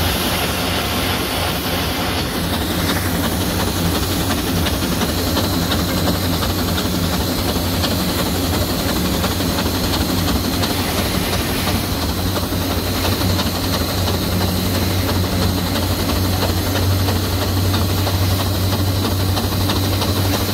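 A steam traction engine chugs with a steady low rumble.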